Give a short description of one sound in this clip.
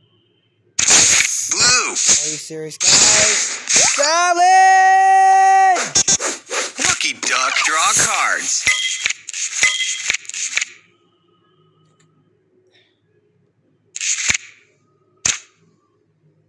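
Game chimes and swishing card sounds play in quick bursts.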